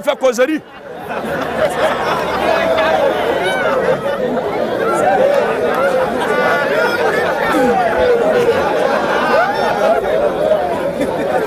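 A crowd of people laughs and chatters.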